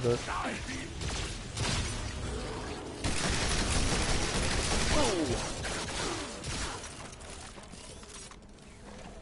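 Energy guns fire in rapid bursts with crackling blasts.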